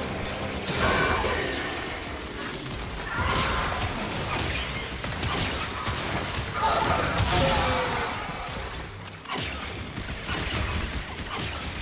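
Energy weapons fire in bursts with sharp zaps.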